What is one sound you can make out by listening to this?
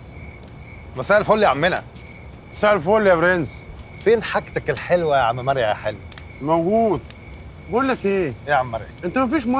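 An older man answers nearby.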